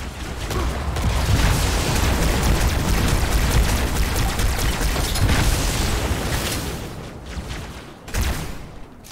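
Energy weapons fire in rapid, loud bursts.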